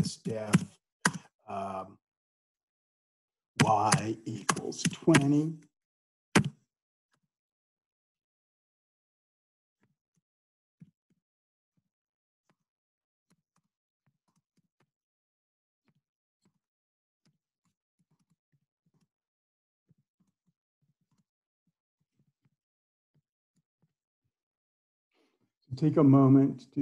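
A middle-aged man speaks calmly into a close microphone, in short bursts with long pauses.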